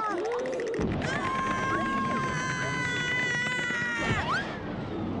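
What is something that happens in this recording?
Cartoon characters scream in a long, high-pitched cry.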